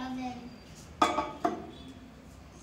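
A bowl clatters against the inside of a microwave oven.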